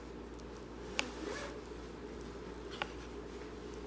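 A fork clinks against a bowl.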